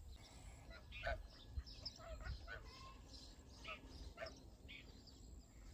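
Ducks quack softly near water.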